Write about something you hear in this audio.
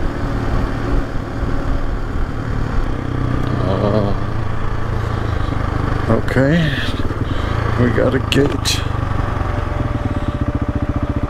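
A motorcycle engine hums as the bike rides along a dirt track.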